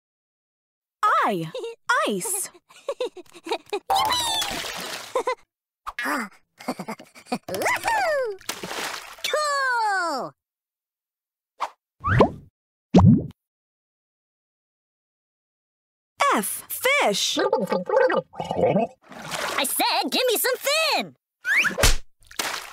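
Playful cartoon sound effects boing and slide up and down in pitch.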